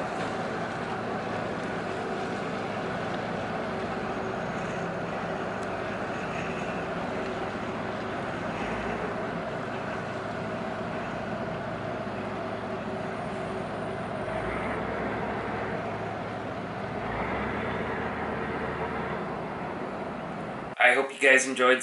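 A ship's engine hums steadily outdoors.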